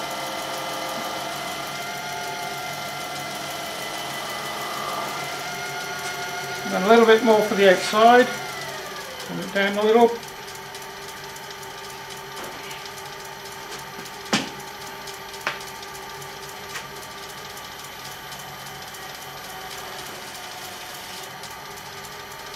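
A wood lathe motor hums as it spins.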